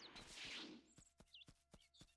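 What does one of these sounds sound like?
Quick footsteps patter on grass.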